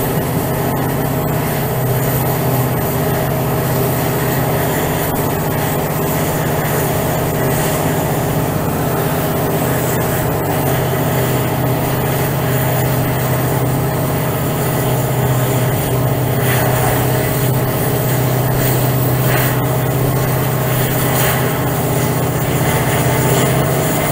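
A diesel locomotive engine drones loudly and steadily, building up slightly as it speeds up.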